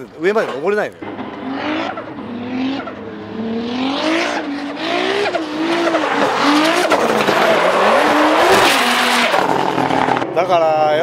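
A car engine revs hard and tyres screech as a car drifts past.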